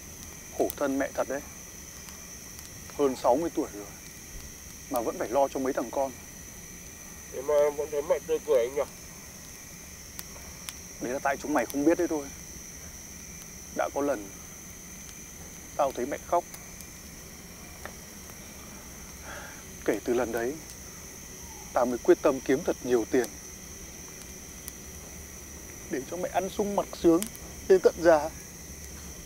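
A young man talks calmly in short bursts, close by.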